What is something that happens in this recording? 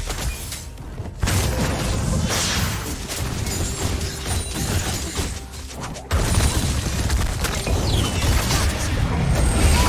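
Fantasy battle sound effects crackle and burst in quick succession.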